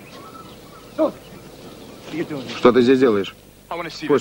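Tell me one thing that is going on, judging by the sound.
A second man answers in a raised voice nearby.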